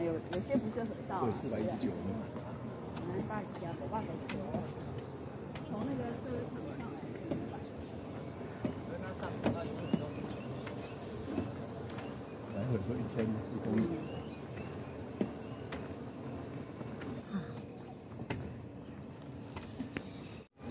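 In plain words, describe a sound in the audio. Men and women chat nearby outdoors.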